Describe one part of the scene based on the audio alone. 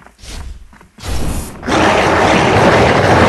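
A loud burst of hissing gas erupts during a fight.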